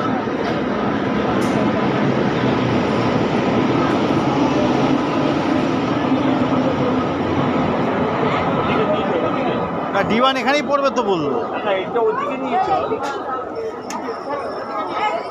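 A crowd of people chatter all around in a busy open space.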